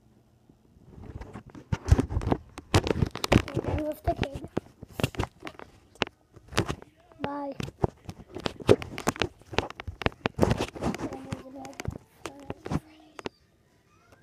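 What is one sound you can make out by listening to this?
A young boy talks excitedly close to the microphone.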